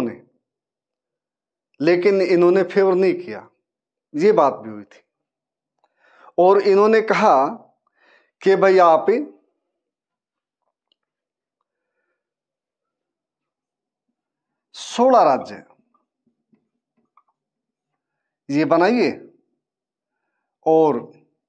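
A middle-aged man speaks clearly and calmly into a close microphone, in short phrases with pauses.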